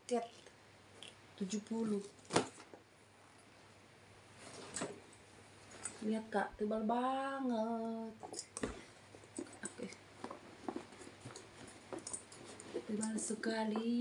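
A bag's fabric rustles and crinkles as it is handled.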